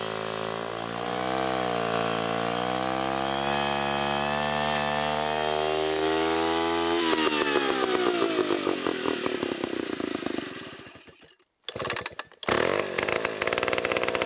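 A chainsaw engine runs loudly and revs up and down.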